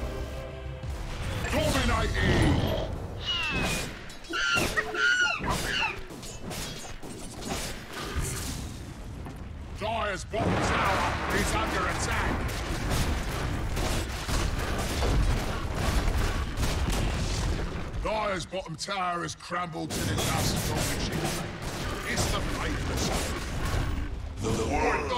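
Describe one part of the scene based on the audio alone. Fantasy battle effects crackle and clash with magic blasts and hits.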